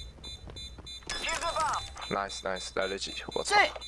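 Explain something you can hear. A planted bomb beeps rapidly while being defused.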